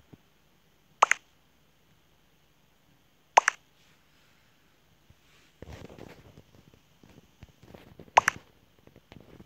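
A short chime sounds as each new chat message arrives.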